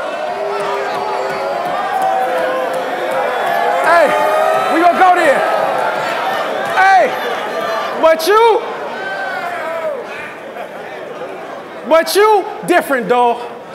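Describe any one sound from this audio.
A man raps loudly and with animation into a microphone in a large echoing hall.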